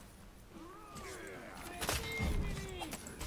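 Swords clash and whoosh in a fight.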